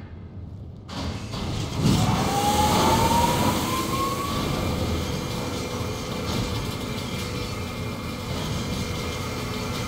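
Large metal gears turn and grind as heavy machinery starts up.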